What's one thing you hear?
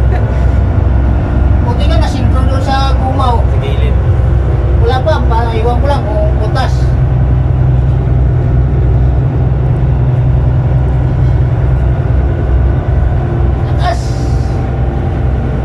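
A ship's engine hums low and steady.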